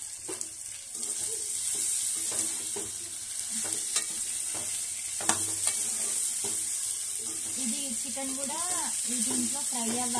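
Food sizzles and crackles in a hot pot.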